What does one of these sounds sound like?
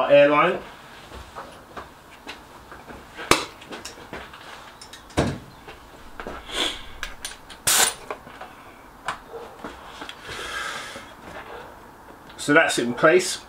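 Tools click and clatter against metal parts.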